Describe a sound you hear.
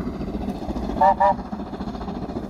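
A steam locomotive's whistle blows briefly.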